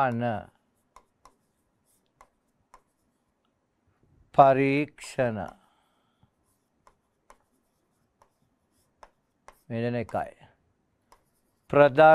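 A marker taps and squeaks faintly on a whiteboard.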